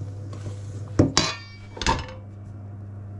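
A spatula scrapes against a metal bowl.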